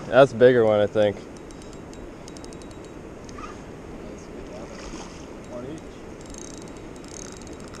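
A fishing reel whirs and clicks as it is cranked.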